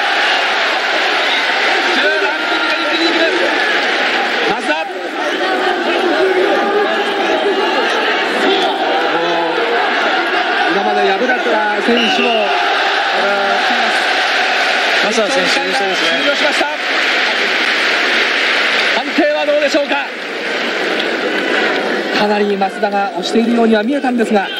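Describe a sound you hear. Men in the crowd yell loudly.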